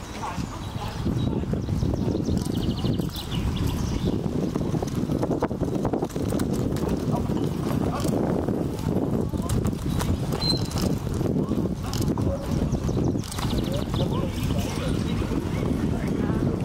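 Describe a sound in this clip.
Carriage wheels rumble over grass and dirt.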